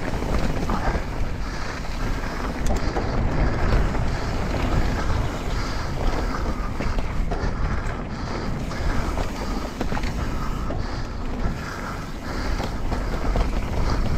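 A bike frame rattles and clatters over bumps.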